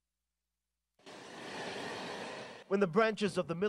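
A jet engine whines loudly nearby.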